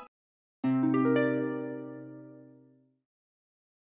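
A harp plays a bright rising run of notes that rings out and fades.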